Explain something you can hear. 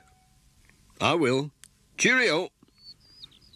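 A man speaks in a friendly voice.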